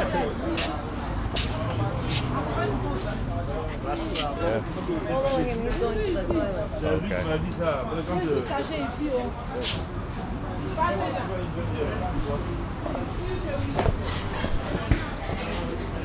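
Men and women chatter nearby outdoors.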